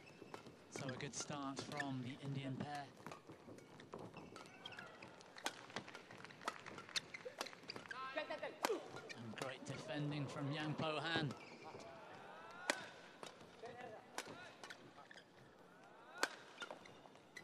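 Rackets smack a shuttlecock back and forth in a fast rally.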